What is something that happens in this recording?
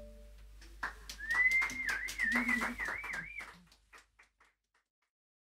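A wooden xylophone is struck in quick, ringing notes.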